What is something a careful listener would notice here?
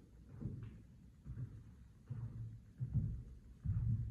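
Footsteps thud on a floor.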